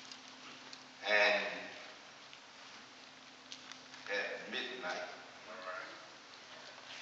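A man preaches loudly and with emphasis from a distance, his voice echoing in a large room.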